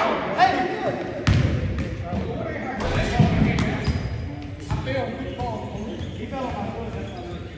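A basketball bounces on a wooden court in a large echoing gym.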